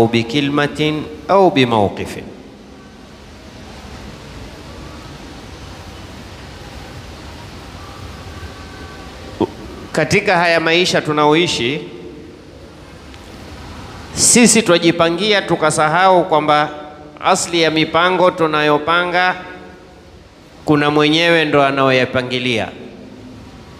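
A man speaks with animation into a close headset microphone, pausing between phrases.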